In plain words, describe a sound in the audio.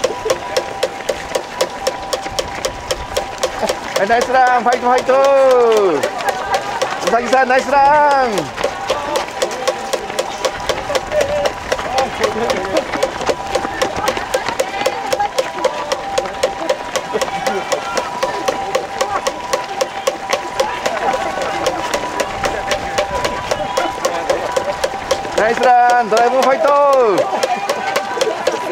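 Many running shoes patter and slap quickly on pavement.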